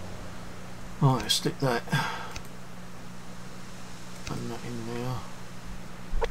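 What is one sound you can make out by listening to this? A man talks casually into a microphone, close by.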